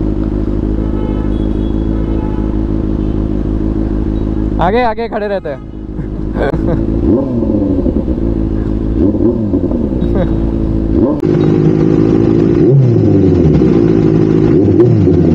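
Scooter engines idle and rev nearby in traffic.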